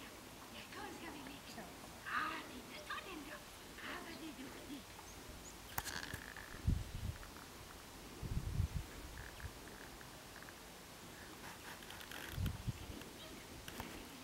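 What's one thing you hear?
A dog growls while tugging on a toy.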